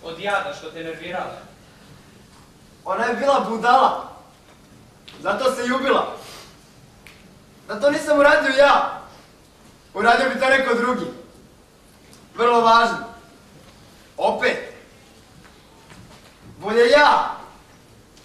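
Another young man answers loudly in an echoing hall.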